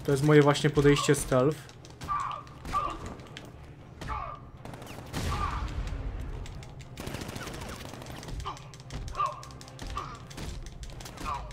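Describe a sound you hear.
Punches and kicks thud in a fight.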